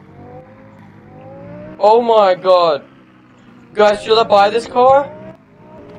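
A sports car engine hums and rises in pitch as the car speeds up.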